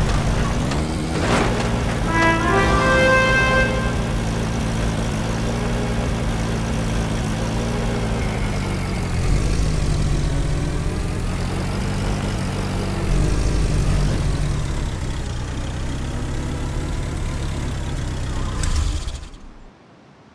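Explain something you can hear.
A jeep engine rumbles steadily as it drives over rough ground.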